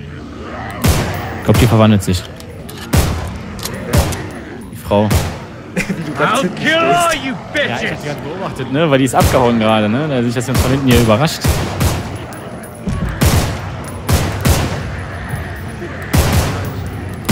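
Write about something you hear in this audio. Gunshots ring out loudly, one after another.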